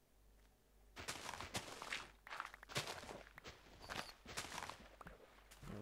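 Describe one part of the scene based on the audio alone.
Soil crunches in quick bursts as it is dug out.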